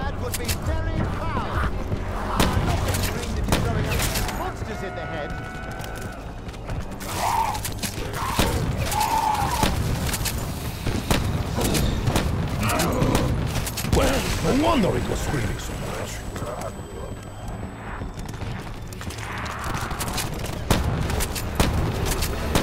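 A shotgun fires in loud, sharp blasts.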